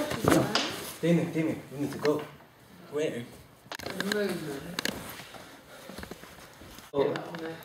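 Young men talk with animation close by.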